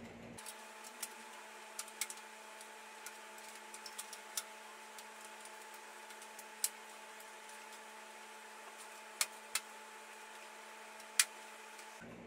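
Small plastic clicks and taps sound as parts are fitted into a metal computer case.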